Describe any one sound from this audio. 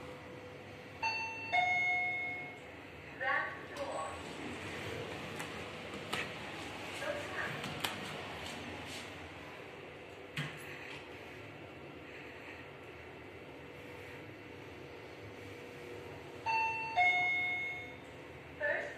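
An elevator chime rings twice.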